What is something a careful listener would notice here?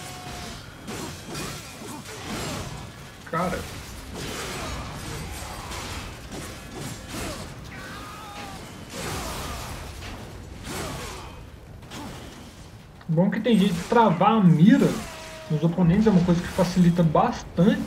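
Blades clash and slash in quick strikes.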